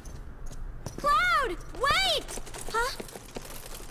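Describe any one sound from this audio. A young woman cries out sharply.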